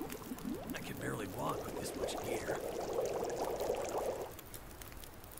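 Water hisses and bubbles over a fire.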